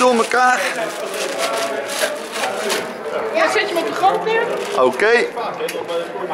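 Several adults and children talk at once.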